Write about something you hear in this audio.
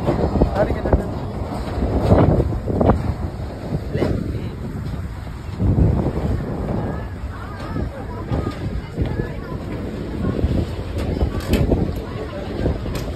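A crowd of adults chatters close by outdoors.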